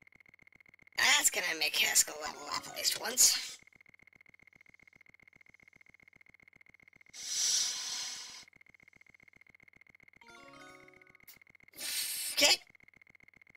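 A short game jingle chimes for a level-up.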